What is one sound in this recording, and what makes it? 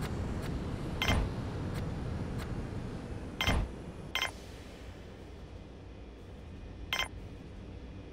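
Game interface clicks and chimes sound as menu buttons are selected.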